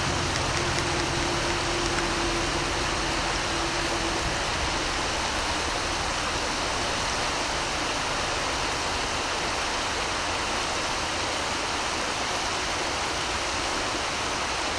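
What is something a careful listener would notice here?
A river flows steadily over rocks.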